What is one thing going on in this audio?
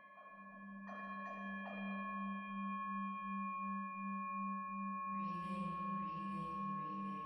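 A metal singing bowl rings with a sustained, wavering hum.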